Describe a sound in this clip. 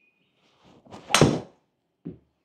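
A golf driver strikes a ball off a hitting mat with a sharp crack.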